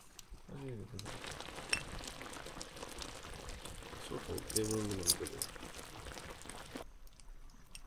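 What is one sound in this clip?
A pot of jam bubbles and simmers.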